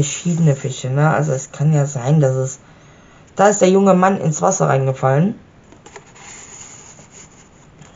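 A stiff paper card rustles and slides against a page.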